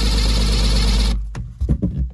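A cordless drill whirs briefly at high speed.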